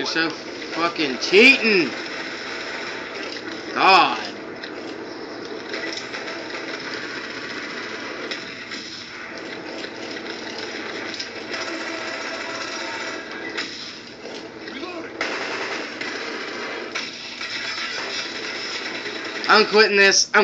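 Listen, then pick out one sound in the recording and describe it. Game sound effects and gunfire play from a television speaker.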